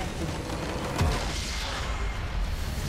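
A structure explodes with a deep boom.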